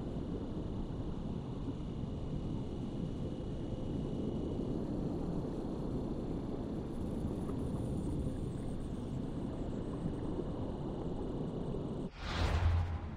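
Water rushes and bubbles in a low, steady murmur underwater.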